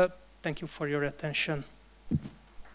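A young man speaks calmly into a microphone through loudspeakers in a large hall.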